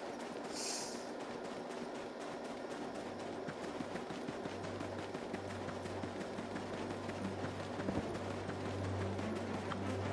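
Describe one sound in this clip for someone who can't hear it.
Quick footsteps patter on a dirt path.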